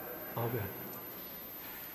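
An elderly man speaks briefly through a microphone in a large echoing hall.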